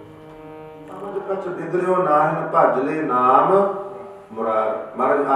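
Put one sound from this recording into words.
Two men sing together through microphones.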